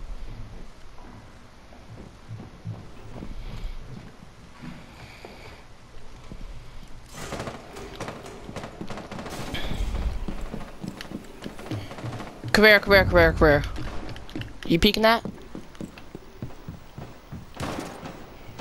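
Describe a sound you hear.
Footsteps thud quickly on a hard floor and up stairs.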